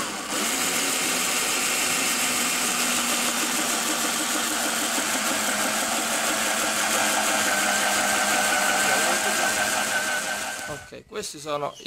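A power drill whines steadily as a hole saw cuts through plastic.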